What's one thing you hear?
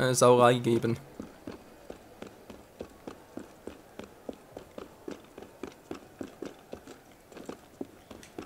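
Quick footsteps patter across roof tiles.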